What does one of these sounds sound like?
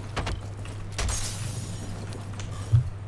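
Glass shatters and tinkles.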